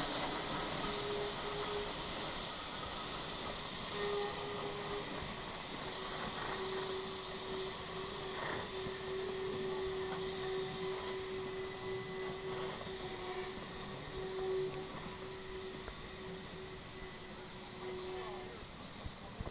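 Metal wheels squeal steadily on the track.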